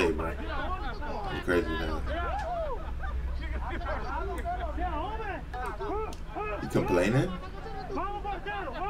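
Several men laugh and shout.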